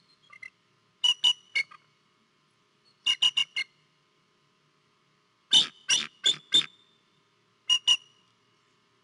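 A bald eagle gives bursts of high, chirping calls.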